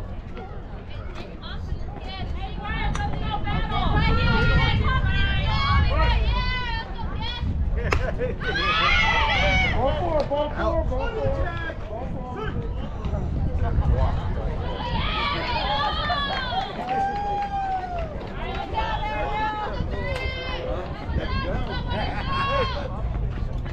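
Players and spectators shout and cheer loudly outdoors.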